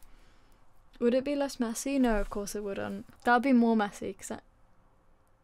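A young person talks with animation close to a microphone.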